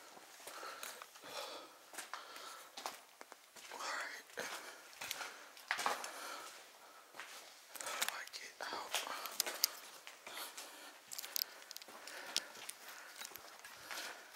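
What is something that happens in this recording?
Footsteps crunch on gritty debris, echoing slightly down a hollow corridor.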